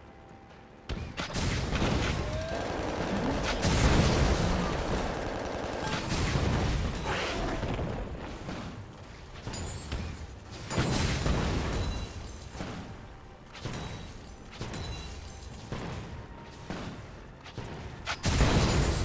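Game spell blasts and weapon hits crash and burst in quick, loud bursts.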